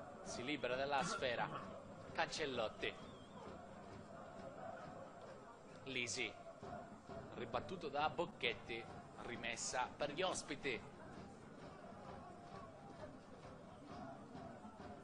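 A stadium crowd murmurs steadily in the open air.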